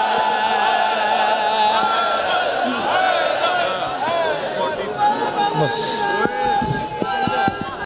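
A man recites loudly and passionately into a microphone, heard through loudspeakers.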